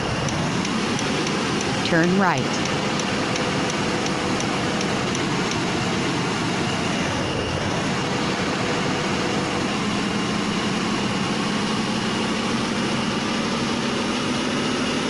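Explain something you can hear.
A truck engine hums steadily as it drives.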